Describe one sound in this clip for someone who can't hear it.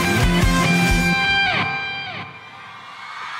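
A band plays loud live music.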